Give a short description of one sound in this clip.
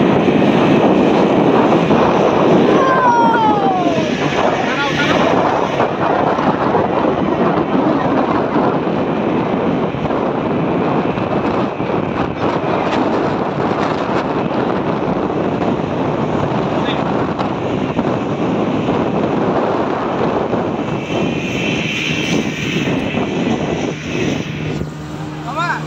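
Strong wind buffets the microphone.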